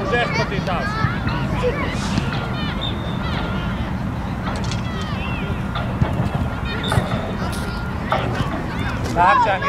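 Young boys shout to each other across an open outdoor field.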